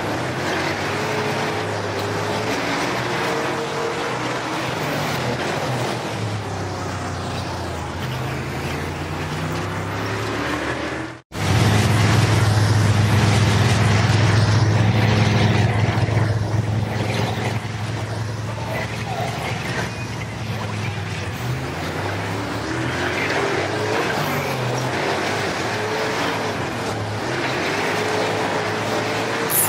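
Race car engines roar and whine at speed.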